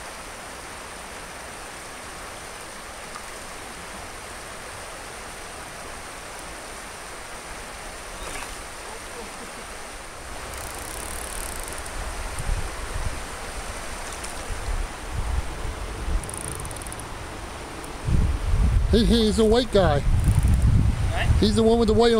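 Water in a shallow stream ripples and flows gently.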